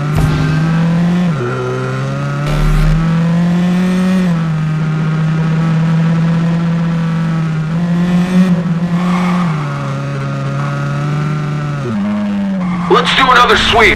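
A car engine hums loudly, its pitch dropping and climbing as it shifts gears.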